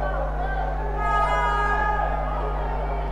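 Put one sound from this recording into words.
A referee's whistle blows sharply in the distance.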